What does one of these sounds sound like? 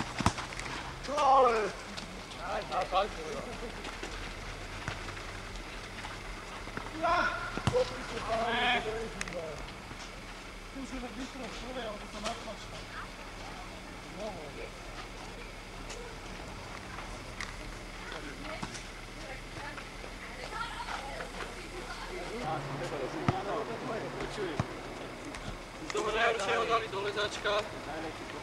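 Men call out to each other outdoors at a distance.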